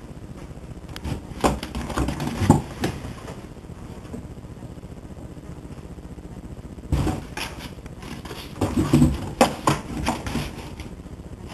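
A kitten scratches and paws at a cardboard box.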